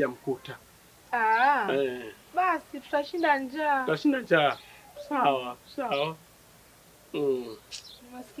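A young woman speaks loudly and animatedly close by.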